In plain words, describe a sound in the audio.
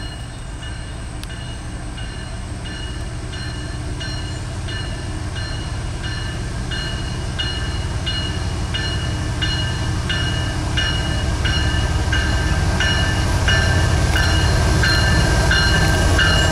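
A freight train's diesel engine rumbles as it approaches, growing steadily louder.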